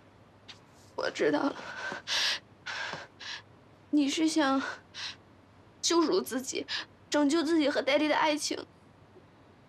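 A young woman speaks with upset, close by.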